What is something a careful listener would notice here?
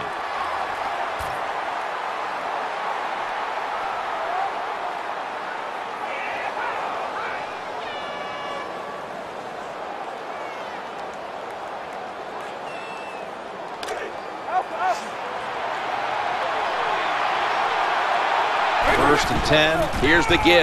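A large stadium crowd roars and cheers steadily, swelling louder toward the end.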